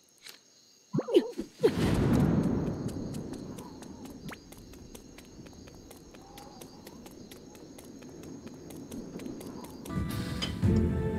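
Magic spell effects whoosh and crackle with a burst.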